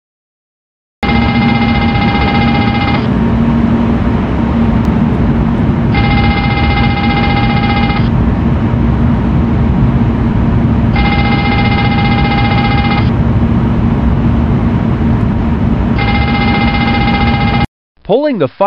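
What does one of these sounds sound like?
A cockpit fire warning alarm rings in repeated bursts.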